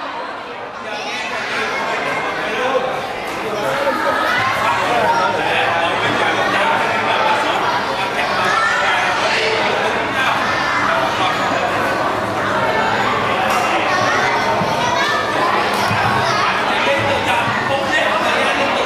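A crowd of children and adults chatter excitedly.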